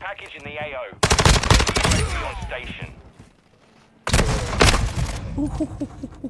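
A rifle fires in loud, rapid bursts.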